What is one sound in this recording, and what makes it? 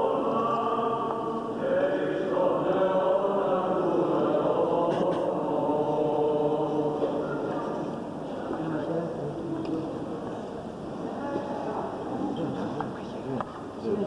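Men chant in a slow, steady drone.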